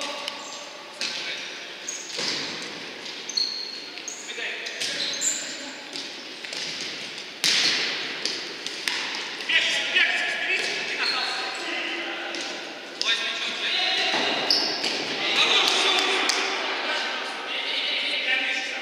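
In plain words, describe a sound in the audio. A ball is kicked with sharp thumps in an echoing hall.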